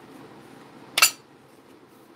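A ceramic tile knocks against a hard surface.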